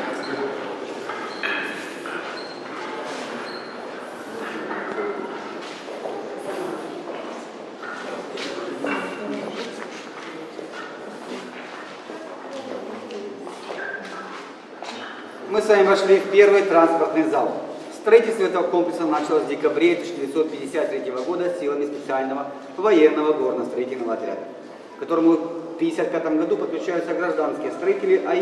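A middle-aged man talks calmly, close by, in a large echoing hall.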